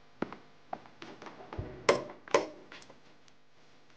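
A wooden wardrobe door creaks open.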